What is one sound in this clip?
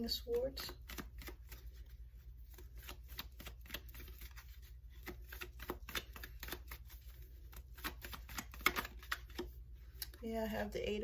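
Playing cards riffle and flick quickly as they are shuffled by hand.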